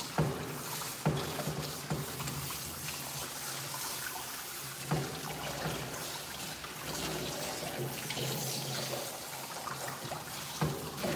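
Thumps and knocks sound from a tub.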